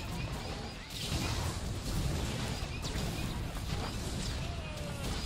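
A fiery blast roars in a video game battle.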